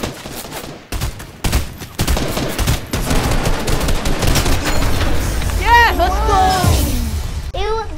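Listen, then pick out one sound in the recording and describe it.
A rifle fires rapid shots.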